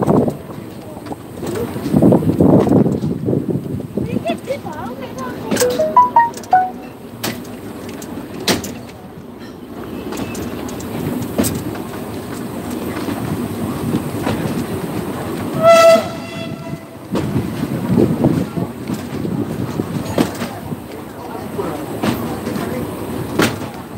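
Wind blows in uneven gusts outdoors, rustling broad leaves.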